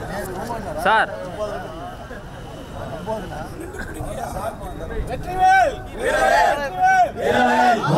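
A crowd of men chatter and murmur nearby.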